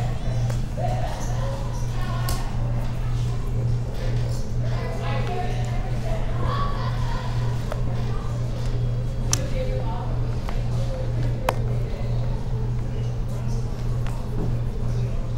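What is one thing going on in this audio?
Men talk quietly around a table.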